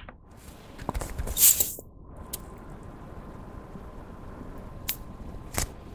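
A cap snaps onto a plastic tube.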